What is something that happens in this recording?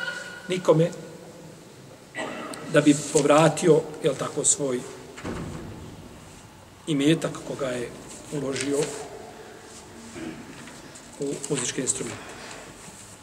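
A middle-aged man speaks calmly and slowly into a close microphone, with pauses.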